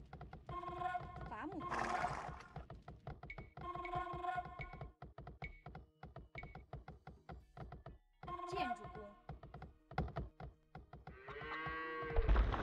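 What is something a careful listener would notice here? Hammers knock rapidly and repeatedly on wood.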